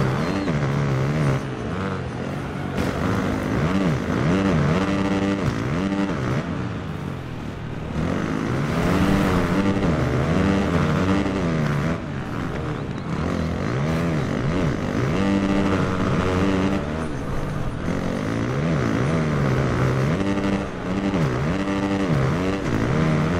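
A motocross bike engine revs up and down as it races over a dirt track.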